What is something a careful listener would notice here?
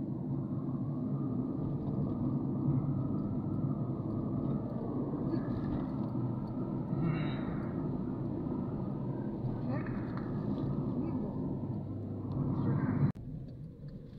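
A car engine hums steadily as tyres roll over the road, heard from inside the car.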